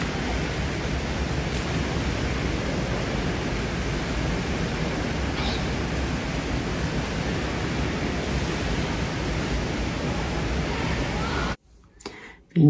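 Water splashes and echoes in an indoor pool.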